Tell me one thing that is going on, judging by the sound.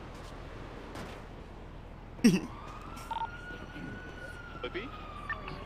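Footsteps thud on a hard ledge.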